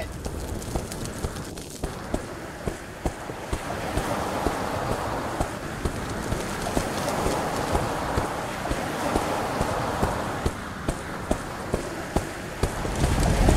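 Footsteps patter quickly and steadily on the ground.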